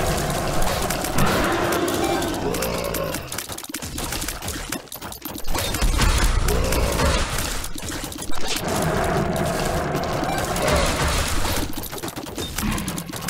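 Rapid video game shots pop and splat over and over.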